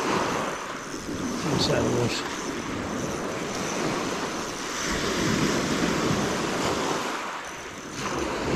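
Waves break and wash up over a pebble beach.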